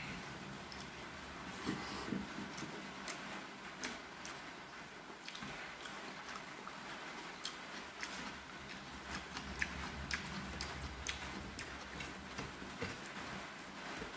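A man eats noisily, chewing and smacking his lips close by.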